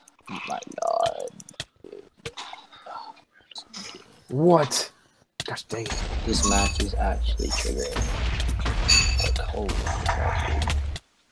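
Sword blows land with short, sharp thuds.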